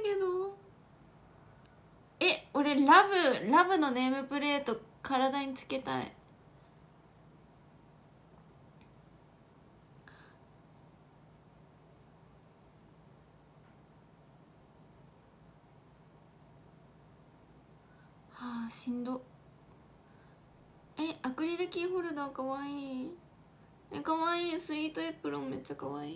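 A young woman talks close to a microphone with animation, in short bursts with pauses.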